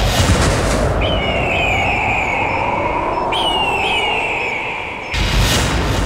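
A bird of prey screeches overhead.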